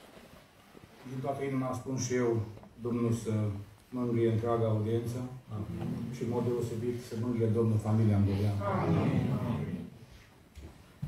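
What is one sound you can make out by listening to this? A man speaks slowly through loudspeakers in a large echoing hall.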